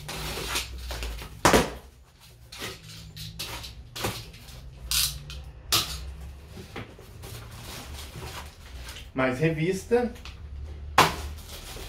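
Cardboard rustles and crinkles as a box is opened by hand.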